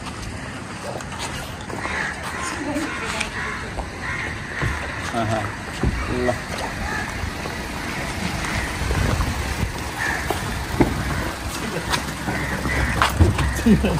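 An elderly man talks calmly to someone close by.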